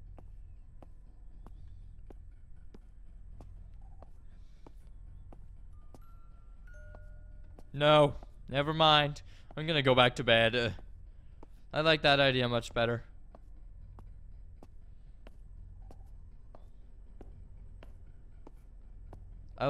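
Soft footsteps tap at a steady walking pace.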